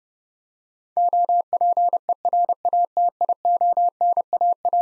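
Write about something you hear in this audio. A steady Morse code tone beeps out quick dots and dashes.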